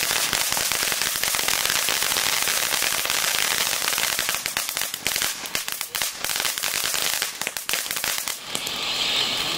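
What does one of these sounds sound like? Firework sparks crackle and pop sharply.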